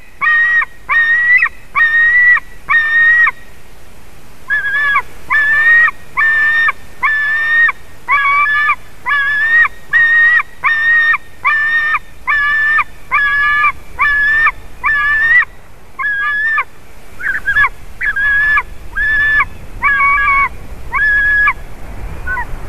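A young eagle calls out again and again in short, shrill, piping cries.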